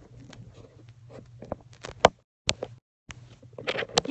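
Clothing rustles and bumps against a phone microphone.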